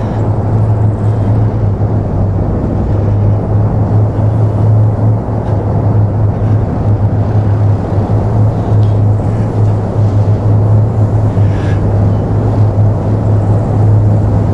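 A tracked armoured vehicle's engine rumbles steadily as the vehicle rolls along.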